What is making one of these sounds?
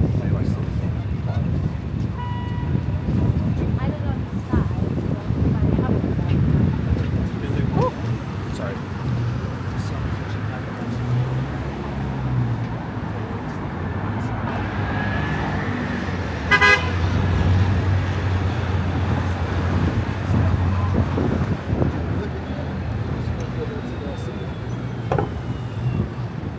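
Steady city traffic hums and rumbles outdoors.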